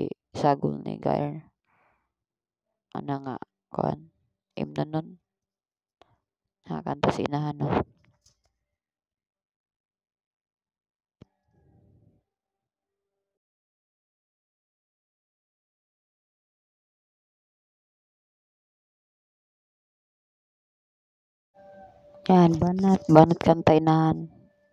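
A young woman sings into a microphone, in short phrases with pauses.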